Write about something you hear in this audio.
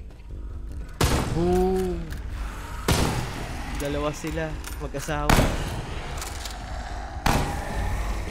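A pistol fires several loud shots that echo briefly.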